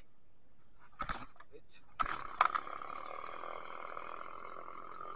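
A chainsaw is pull-started with a few sharp tugs and then drones steadily.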